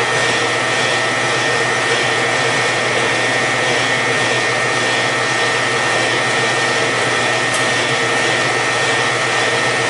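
A band saw motor runs with a steady hum and whine.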